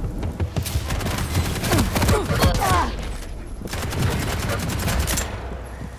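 Rapid gunfire blasts close by.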